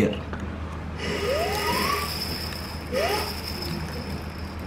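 A man blows air through a plastic pipe.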